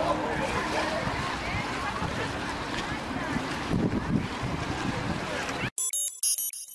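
Waves lap gently on a sandy shore.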